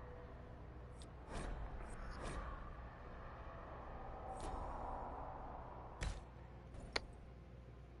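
Game menu sounds click as options are chosen.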